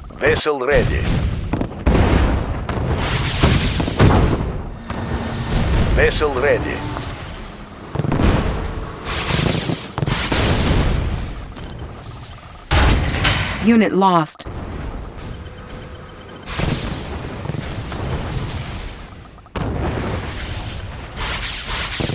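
Rockets whoosh through the air.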